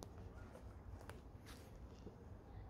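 Footsteps crunch on mossy ground.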